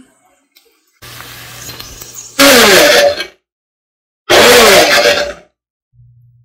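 A blender whirs loudly in short bursts.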